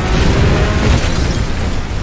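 A fiery explosion booms.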